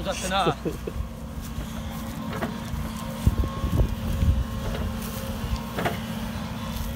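An excavator bucket scrapes and thuds into soil.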